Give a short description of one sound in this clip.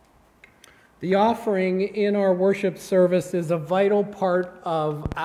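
An older man speaks calmly into a microphone in a large room.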